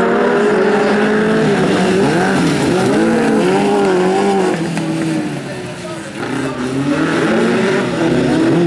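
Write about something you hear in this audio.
Tyres skid and scrape on loose dirt.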